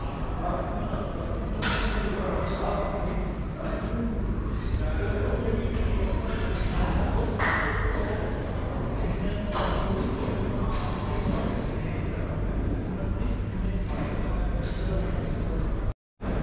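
Weight plates clank on a gym machine.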